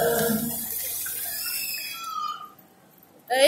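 Fountain jets hiss and splash water.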